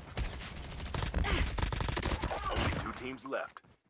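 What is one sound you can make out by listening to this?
A gun fires rapidly in loud bursts.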